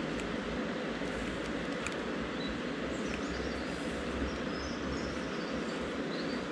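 A fishing reel whirs softly as its handle is turned.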